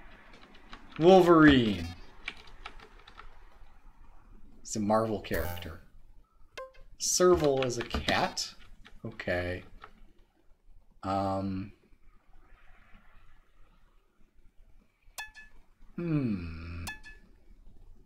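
Short electronic game tones chirp and slide downward in pitch.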